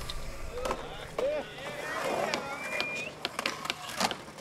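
Skateboard wheels roll and grind on concrete.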